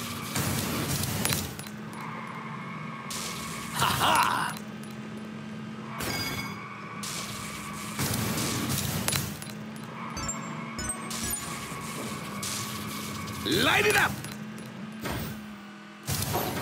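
Speed boosts whoosh loudly now and then.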